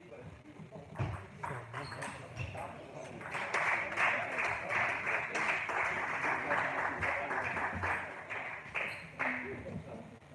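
A table tennis ball clicks quickly back and forth off paddles and the table in a large echoing hall.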